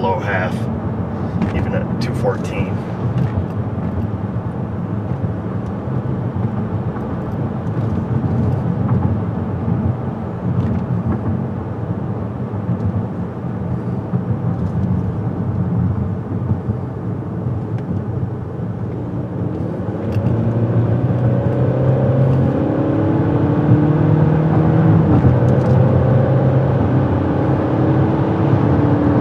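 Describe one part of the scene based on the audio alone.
A car engine hums steadily from inside the car, rising in pitch as it speeds up.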